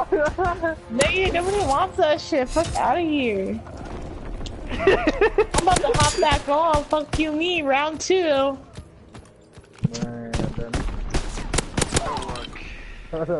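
A submachine gun fires in short, sharp bursts.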